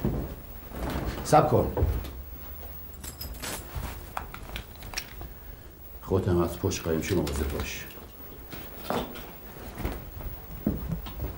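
A second man answers in a low, firm voice.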